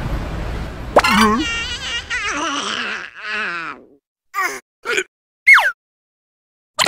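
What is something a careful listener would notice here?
A cartoon creature babbles and squeaks in a high, comical voice.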